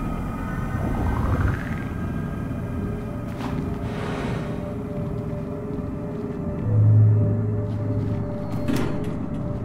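Footsteps tap softly on a stone floor.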